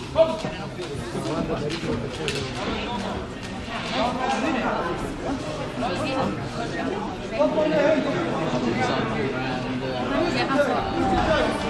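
Spectators talk and call out in a large echoing hall.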